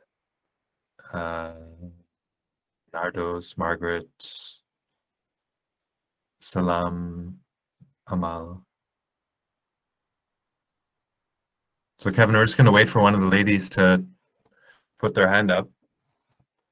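A middle-aged man speaks calmly in short phrases over an online call.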